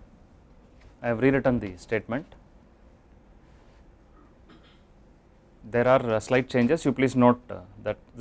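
A man lectures calmly through a microphone, with pauses.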